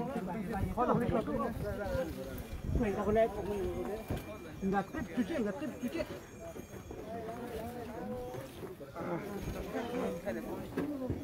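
A crowd of men and women talk and murmur close by, outdoors.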